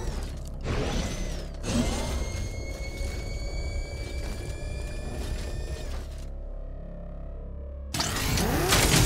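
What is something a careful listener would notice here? A heavy vehicle engine rumbles and roars.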